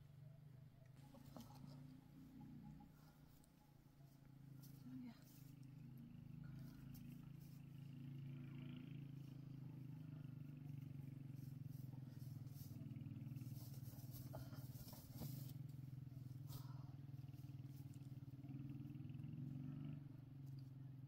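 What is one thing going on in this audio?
Heavy cloth rustles and flaps as it is handled.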